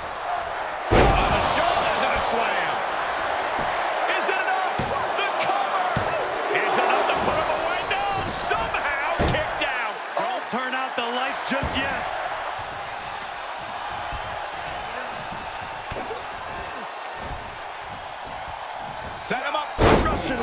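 Bodies slam heavily onto a wrestling ring mat.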